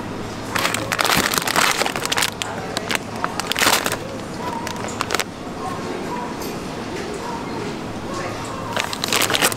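Plastic packaging crinkles and rustles as a hand handles it.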